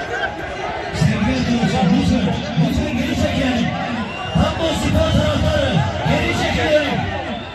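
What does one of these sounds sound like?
A man close by shouts loudly.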